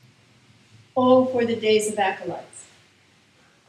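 A woman speaks briefly.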